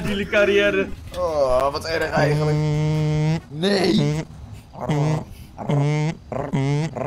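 A young man sings loudly and playfully into a microphone, drawing out long notes.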